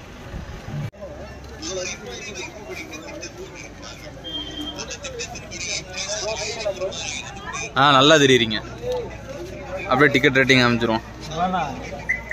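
Several men talk nearby with animation.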